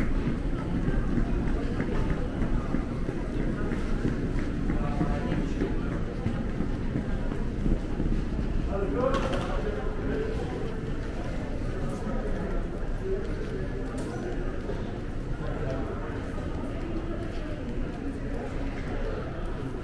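Suitcase wheels roll over a tiled floor.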